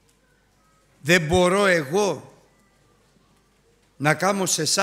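A middle-aged man preaches emphatically through a microphone in a large echoing hall, with long pauses.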